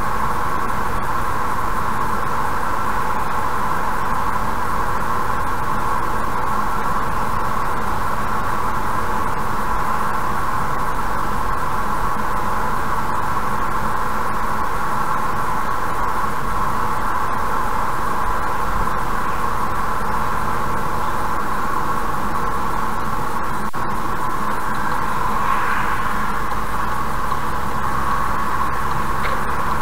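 Tyres hum steadily on a smooth road at speed.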